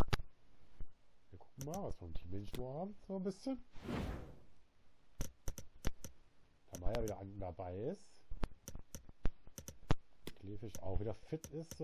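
Menu selection clicks tick sharply now and then.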